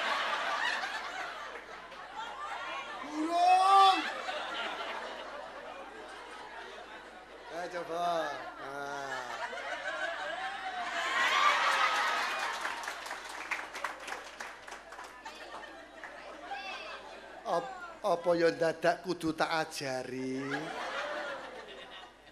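An elderly woman laughs heartily close by.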